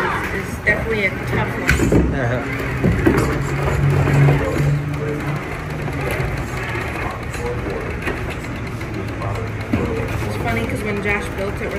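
A small electric motor whirs.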